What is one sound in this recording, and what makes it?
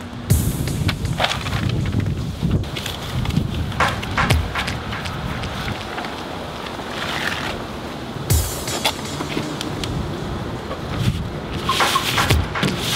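Paper rustles and crinkles as it is handled close by.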